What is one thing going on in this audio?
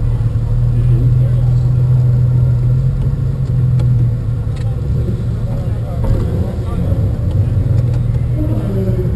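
A car engine idles with a low, steady rumble close by.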